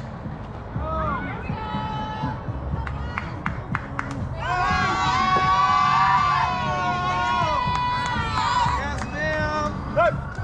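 Adult men and women shout and cheer from across an open field.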